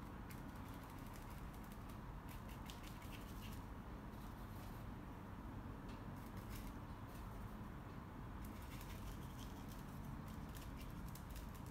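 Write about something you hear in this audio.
A paintbrush softly scratches and dabs on canvas.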